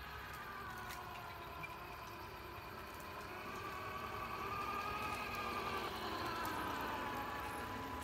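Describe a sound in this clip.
Plastic wheels roll and rattle on paving stones.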